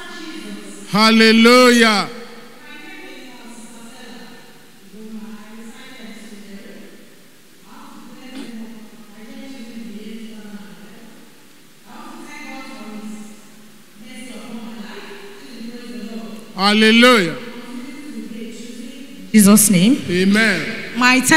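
A woman cries out loudly in a high, drawn-out voice through a microphone.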